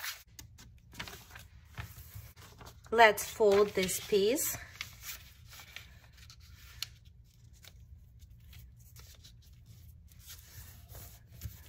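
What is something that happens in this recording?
Paper rustles and crinkles as it is folded and pressed.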